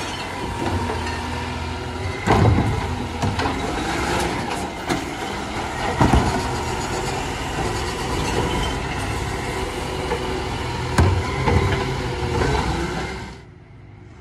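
A truck's lifting arm whirs and hums as it tips a bin.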